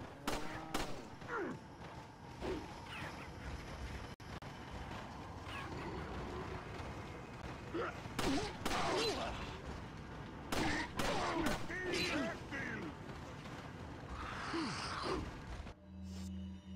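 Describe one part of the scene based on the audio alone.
Men shout and grunt close by.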